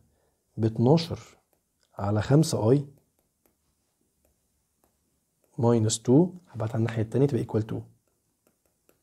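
A young man speaks calmly and clearly into a close microphone, explaining in short phrases.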